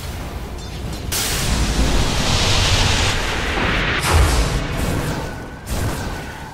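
Weapons clash and thud in a fantasy battle.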